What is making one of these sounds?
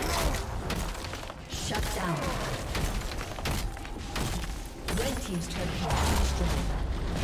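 Magic impacts boom in quick bursts.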